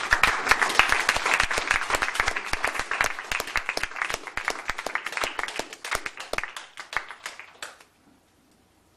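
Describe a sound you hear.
A double bass is plucked.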